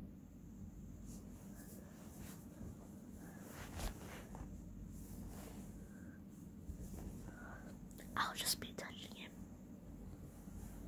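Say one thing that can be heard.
Fingers rub and scratch a plush toy close to the microphone.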